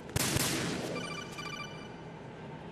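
A radio receiver beeps in a quick electronic pattern.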